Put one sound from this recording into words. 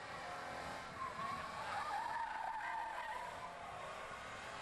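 A race car engine roars past at speed.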